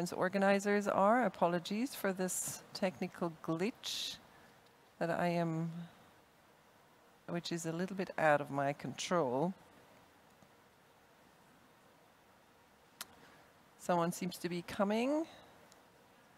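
A woman speaks calmly into a close microphone, in pauses.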